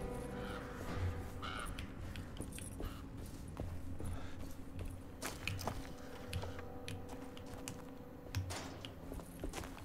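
Footsteps crunch on a path.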